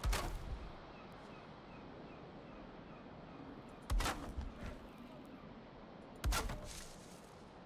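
Wooden beams thud heavily into place, one after another.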